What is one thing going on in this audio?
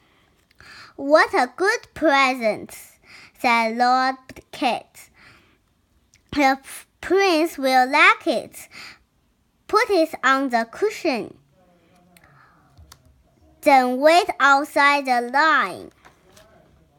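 A young child reads aloud slowly, close by.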